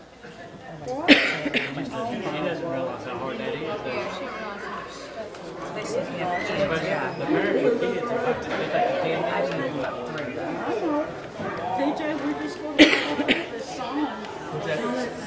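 A crowd of people murmurs and chats.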